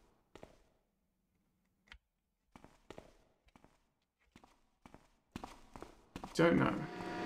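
Footsteps tap on a stone floor in an echoing passage.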